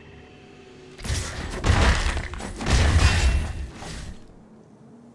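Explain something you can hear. Game sound effects whoosh and boom.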